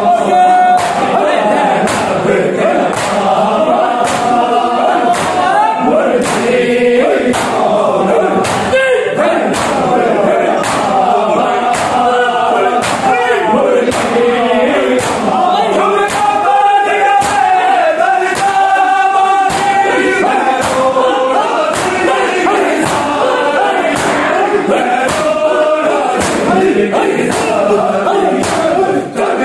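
Men beat their bare chests in a steady rhythm.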